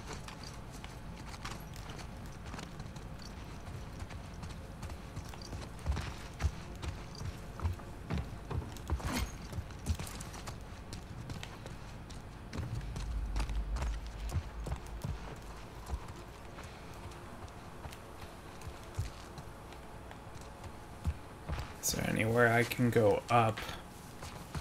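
Footsteps crunch on wooden boards and gravel.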